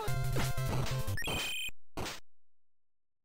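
Retro video game music and sound effects play in chiptune bleeps.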